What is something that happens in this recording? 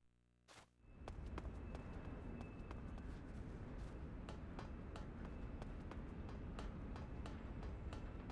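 Footsteps patter on a hard floor as a figure runs.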